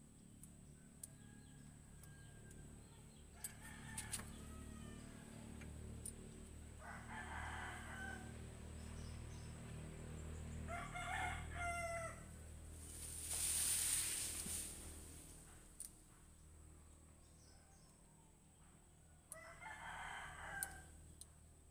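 Metal tools clink against an engine.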